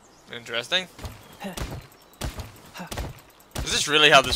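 Blows thud and rustle against a leafy bush.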